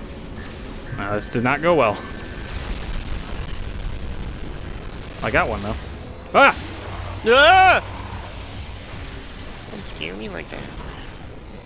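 An energy gun fires with sharp, warbling zaps.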